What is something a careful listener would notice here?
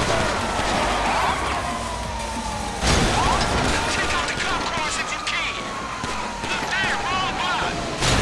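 A police siren wails close by.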